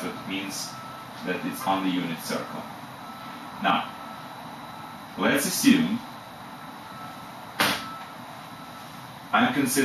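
A middle-aged man speaks calmly in short phrases, close by.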